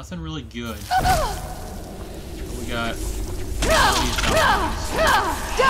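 A frost spell blasts with a hissing roar.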